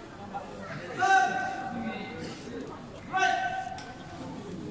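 A man calls out loudly.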